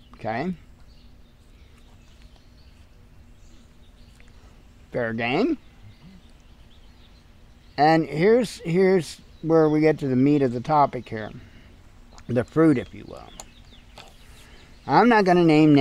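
A middle-aged man talks calmly and close by, with pauses, outdoors.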